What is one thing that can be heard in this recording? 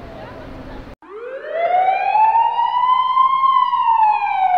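A siren wails nearby.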